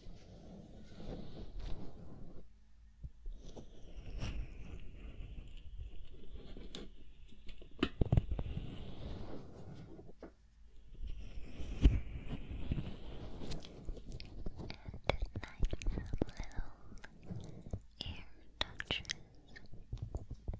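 A young woman whispers softly and closely into a microphone.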